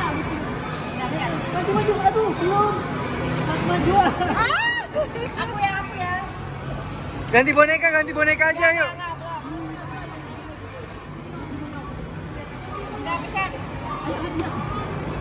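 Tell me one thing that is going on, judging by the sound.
A young woman talks and laughs cheerfully close by.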